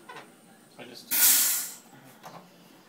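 A soda maker hisses loudly in a short burst as gas is pushed into a bottle.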